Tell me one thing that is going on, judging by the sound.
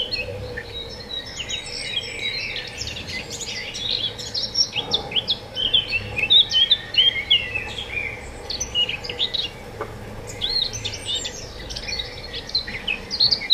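A small rodent nibbles softly at a mushroom.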